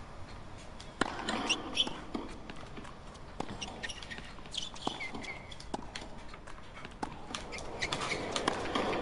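A tennis ball is struck sharply with rackets, back and forth.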